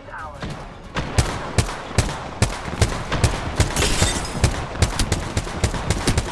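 A rifle fires repeated sharp shots in quick succession.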